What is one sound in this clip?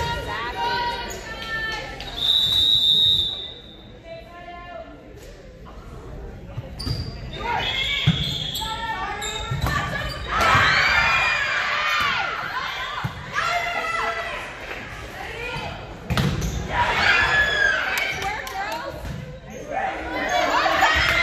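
Young women shout and cheer in a large echoing gym.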